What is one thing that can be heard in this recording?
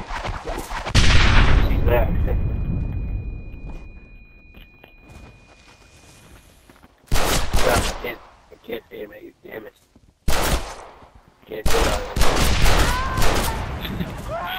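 Rifle shots crack loudly, one after another, outdoors.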